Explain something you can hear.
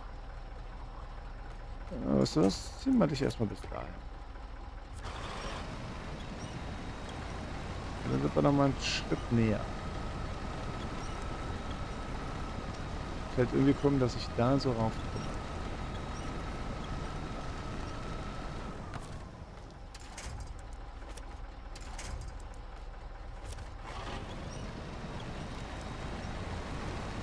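A heavy truck engine rumbles low and steady as the truck drives slowly.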